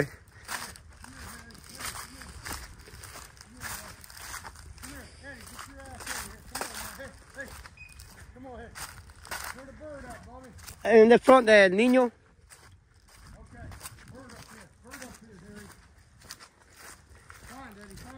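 Footsteps crunch over dry stubble and stalks.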